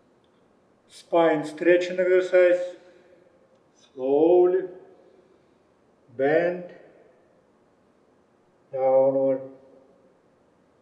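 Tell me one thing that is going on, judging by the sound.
A man speaks calmly, giving instructions.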